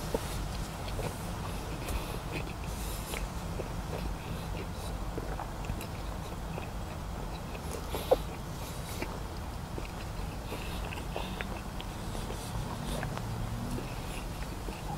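An elderly man chews grilled chicken nuggets close to a microphone, with wet mouth clicks.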